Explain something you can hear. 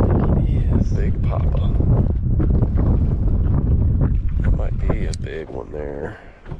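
Wind blows hard across open water.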